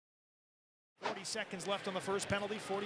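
Skates scrape on ice as hockey players glide.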